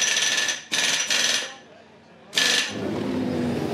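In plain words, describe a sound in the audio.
A pneumatic wheel gun whirs in short bursts.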